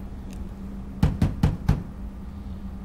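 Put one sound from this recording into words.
A fist knocks four times on a door.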